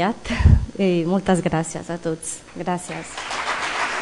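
A woman speaks briefly through a microphone in a large hall.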